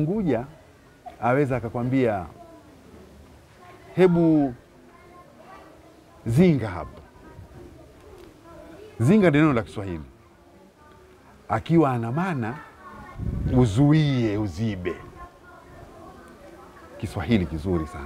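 An elderly man speaks calmly and warmly, close to a microphone, in short bursts with pauses.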